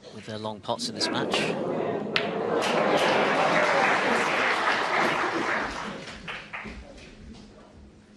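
Snooker balls knock against each other and thud off the cushions.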